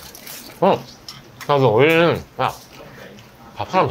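Cutlery clinks against dishes.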